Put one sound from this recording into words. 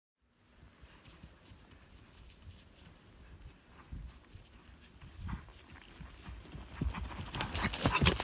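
A horse's hooves thud on dry grass.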